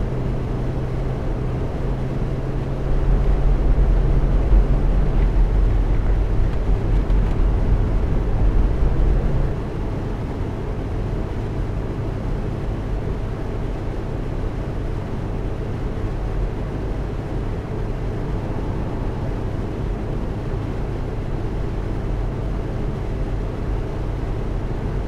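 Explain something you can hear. Tyres roll on a road.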